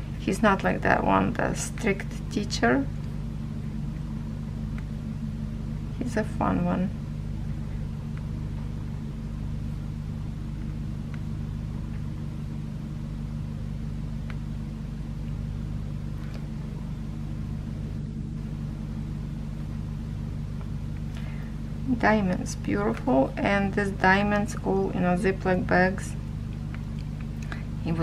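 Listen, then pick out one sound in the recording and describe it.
A pen tip taps and clicks softly as small beads are pressed into place.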